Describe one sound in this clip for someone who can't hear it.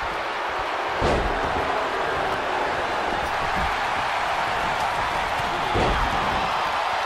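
Heavy bodies slam onto a wrestling mat with deep thuds.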